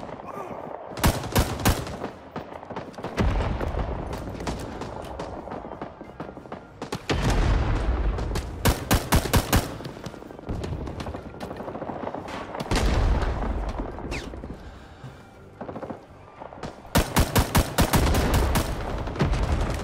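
A rifle fires in quick bursts of loud shots.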